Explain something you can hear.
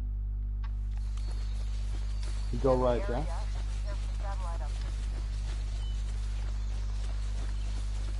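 Leaves and grass rustle as someone pushes through dense bushes.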